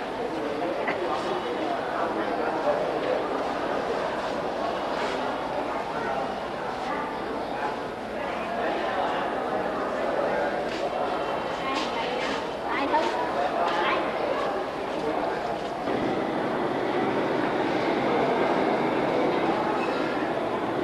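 A crowd of people murmurs and chatters in an echoing hall.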